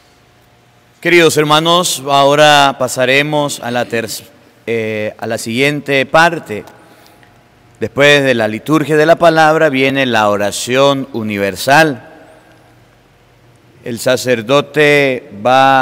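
A man chants loudly into a microphone.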